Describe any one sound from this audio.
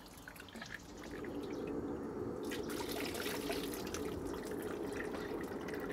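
Liquid splashes as it is ladled over meat.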